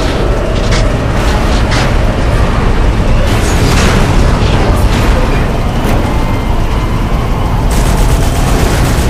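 A tank engine rumbles steadily as the tank rolls along.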